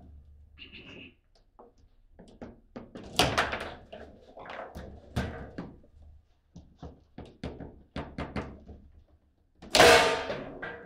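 Foosball rods spin and clatter as the ball knocks against the players.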